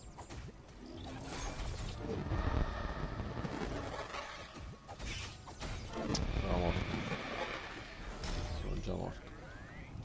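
Electronic blasts and crackles from a video game burst repeatedly.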